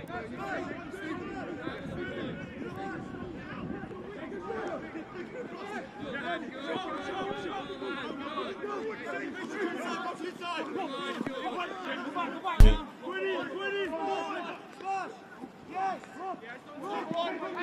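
Several young men shout and call out to each other outdoors.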